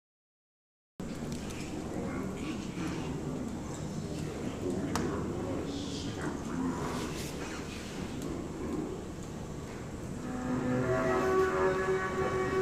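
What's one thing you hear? A clarinet plays a jazz line.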